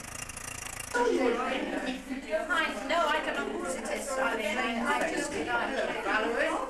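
Several women chat and talk over one another nearby.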